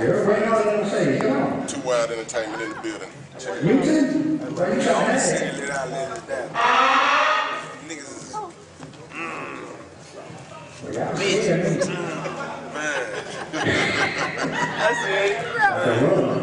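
A man talks into a microphone through loudspeakers in a large room.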